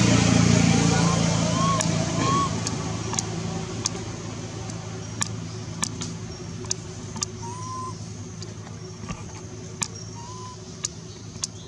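A baby monkey gives soft, high squeaks.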